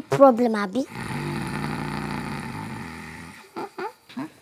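A man snores loudly in his sleep.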